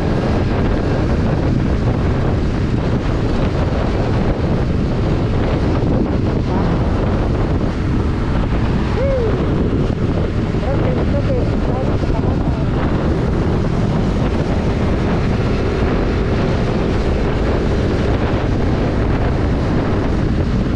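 Wind roars loudly past a microphone on a moving motorcycle.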